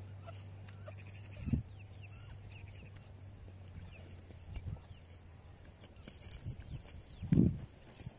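Chickens peck at a rock outdoors.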